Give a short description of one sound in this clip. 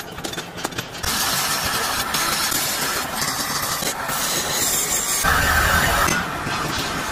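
A grinding wheel screeches against steel.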